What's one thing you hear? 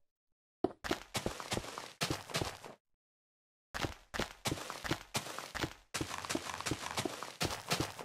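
Blocks break with quick, repeated crunching knocks.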